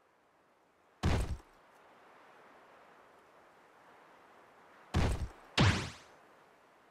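Heavy blows land with loud thuds during a struggle.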